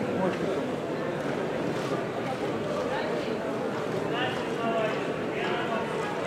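Voices murmur and chatter in a large echoing hall.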